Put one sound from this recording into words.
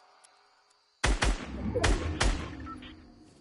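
An assault rifle fires a quick burst of shots in a video game.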